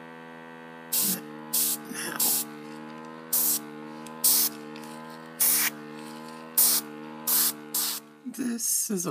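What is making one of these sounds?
An airbrush hisses in short bursts of air.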